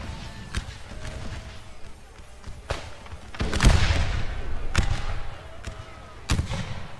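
Musket volleys crack and boom across open ground.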